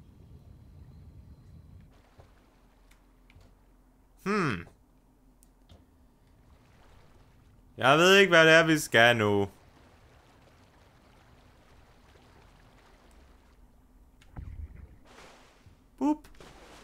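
Water splashes and laps softly as a swimmer paddles through it.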